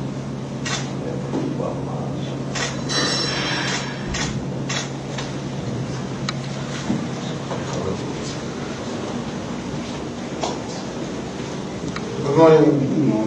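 Several men murmur softly in a room.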